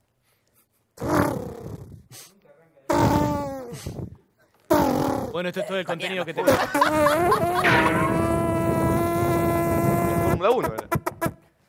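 A young man imitates sounds with his mouth, with long wailing, sliding tones.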